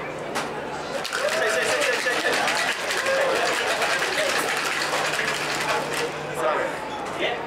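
A cocktail shaker rattles with ice, shaken hard.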